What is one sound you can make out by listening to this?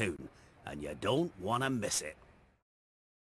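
A deep-voiced man speaks warmly with a rough accent, heard close.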